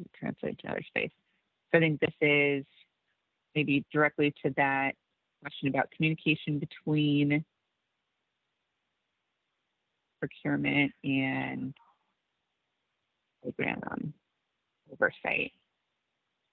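A woman speaks calmly over an online call, with pauses.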